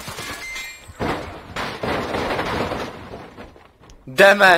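A truck slams into something with a loud crash.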